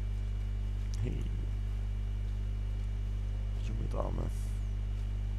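A young man talks briefly and casually close to a microphone.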